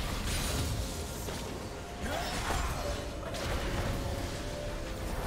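Magic spells whoosh and crackle in a fast game battle.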